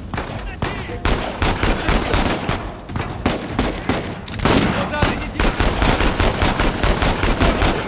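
Pistol shots crack in quick bursts, echoing in a cave.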